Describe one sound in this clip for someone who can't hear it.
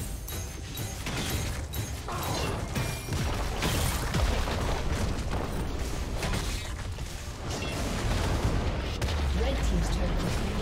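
Magic blasts and sword hits crackle and thud in a fast, busy fight.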